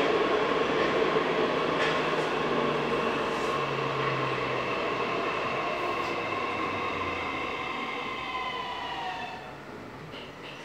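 A train's electric motor whines and slowly falls in pitch as it slows.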